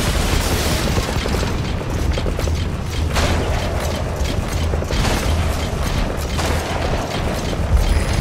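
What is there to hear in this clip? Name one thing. A robotic walker's metal legs clank and thump in quick steps through grass.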